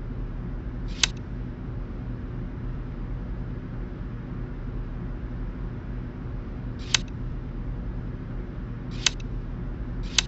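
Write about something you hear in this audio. A short chime sounds as a tile snaps onto a puzzle grid.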